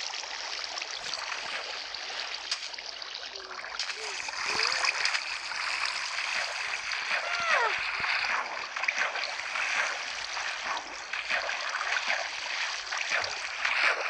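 Water splashes and trickles.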